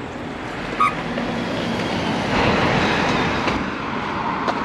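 A motorcycle engine roars past nearby.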